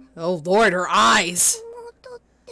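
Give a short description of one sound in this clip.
A young man exclaims loudly and excitedly into a close microphone.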